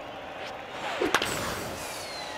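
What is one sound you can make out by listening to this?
A baseball bat cracks on a ball.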